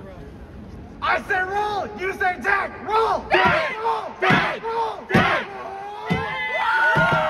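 A young man speaks loudly through a loudspeaker in a large echoing hall.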